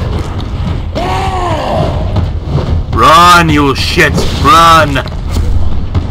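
A monster growls and roars loudly several times.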